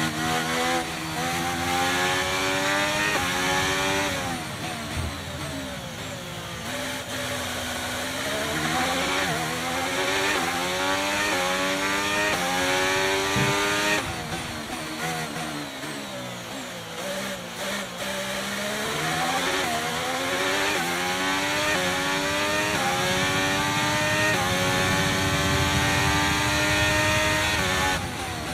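A racing car engine screams close by, rising in pitch through the gears and dropping as it slows for corners.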